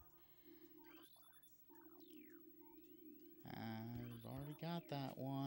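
Electronic game sounds chirp and sweep in pitch.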